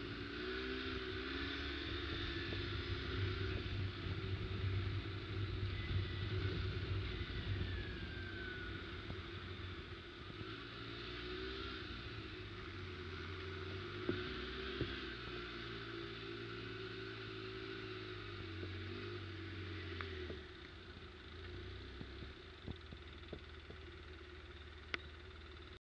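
Tyres crunch over leaves and dirt.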